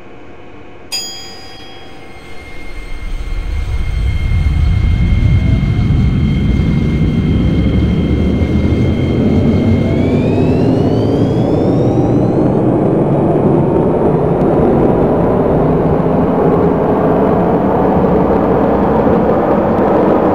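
An electric train motor whines, rising in pitch as the train speeds up.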